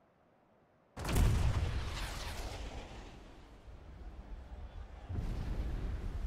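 A huge cannon fires with a deep booming blast that rumbles away.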